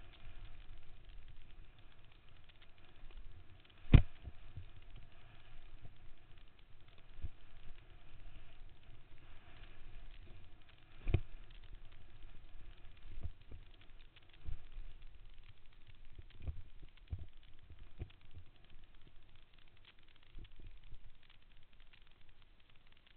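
Wind rumbles against a helmet microphone while riding fast.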